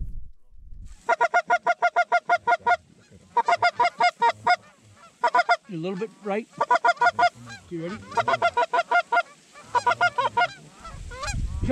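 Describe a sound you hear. Geese honk loudly in rapid bursts.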